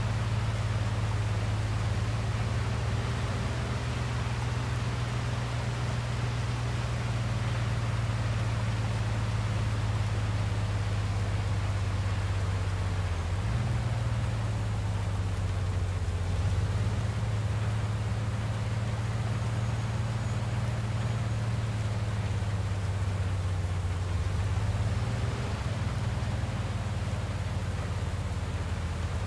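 Tyres swish over a wet road.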